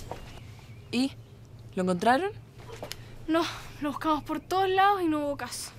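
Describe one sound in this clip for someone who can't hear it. A teenage girl speaks with animation nearby.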